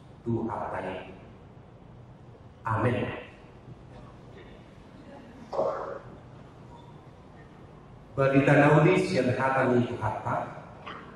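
A middle-aged man speaks slowly and solemnly into a microphone in a large echoing hall, with pauses.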